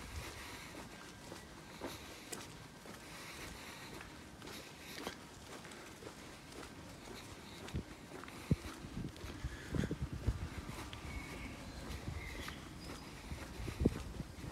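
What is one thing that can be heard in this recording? Footsteps tread on stone pavement outdoors.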